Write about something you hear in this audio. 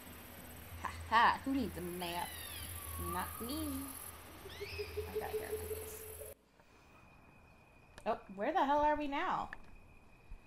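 A young woman talks animatedly into a close microphone.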